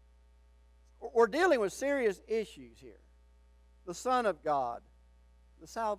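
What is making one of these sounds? An older man speaks with emphasis into a microphone, with pauses between phrases.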